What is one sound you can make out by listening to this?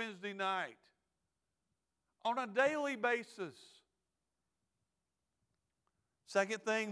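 A middle-aged man speaks calmly into a microphone, with pauses, heard through a loudspeaker.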